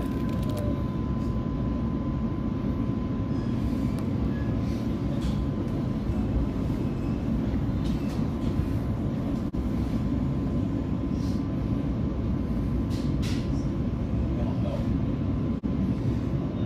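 Train wheels click and squeal on the rails.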